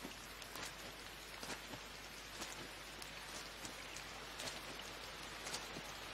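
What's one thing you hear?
Footsteps run on a road.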